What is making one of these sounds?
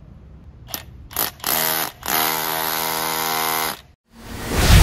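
A hammer drill hums loudly.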